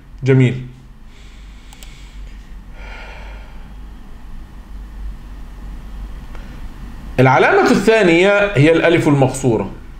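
A man speaks calmly and slowly, close to a microphone.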